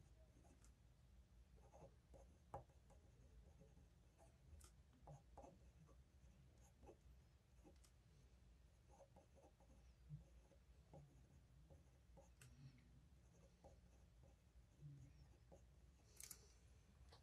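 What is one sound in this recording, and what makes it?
A dip pen nib scratches softly across paper.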